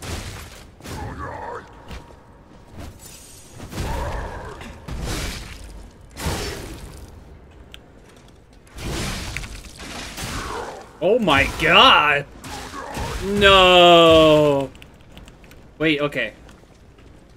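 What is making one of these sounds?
A young woman speaks and shrieks with animation through a microphone.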